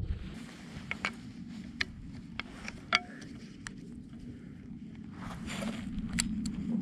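A man knocks and clicks gear together with his hands.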